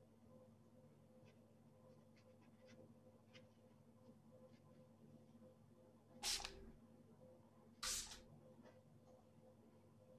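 A brush dabs and scrapes softly on paper.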